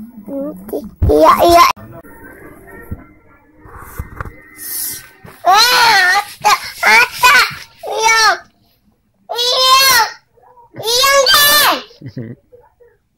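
A young girl cries and wails loudly close by.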